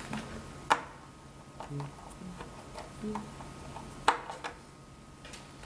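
A screwdriver clicks and scrapes against metal screws.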